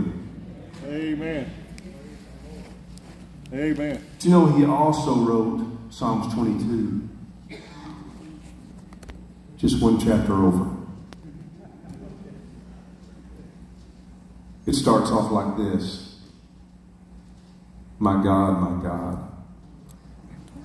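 A middle-aged man speaks through a microphone and loudspeakers in short bursts with pauses, in a large echoing room.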